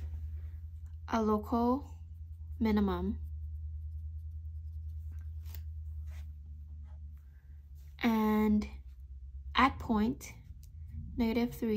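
A marker squeaks softly as it writes on paper.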